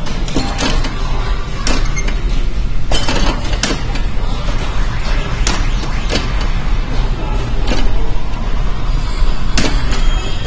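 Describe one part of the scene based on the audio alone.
Pinball flippers clack sharply now and then.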